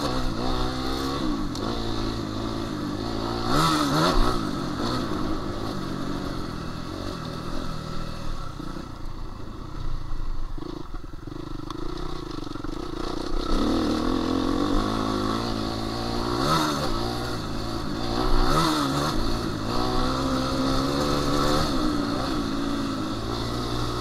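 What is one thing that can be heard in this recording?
A dirt bike engine revs up and down, close by.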